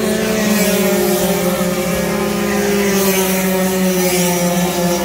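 A motorcycle engine roars loudly as it speeds past.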